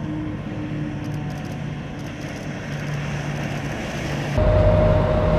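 A motorboat engine roars as the boat speeds across the water.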